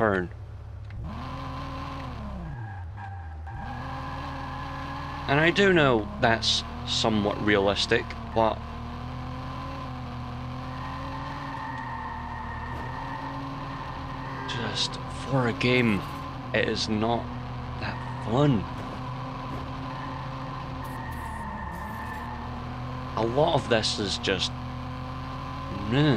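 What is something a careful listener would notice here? A car engine hums steadily as a car drives fast.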